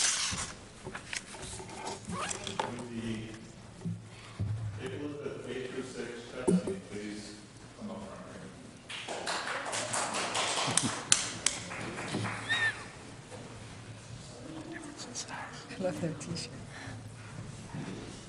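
A man speaks calmly over a microphone in a large room.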